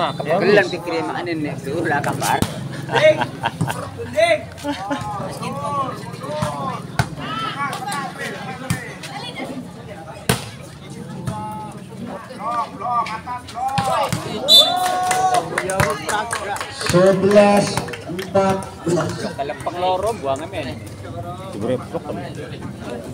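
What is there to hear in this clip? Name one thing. Young women shout and cheer to each other outdoors.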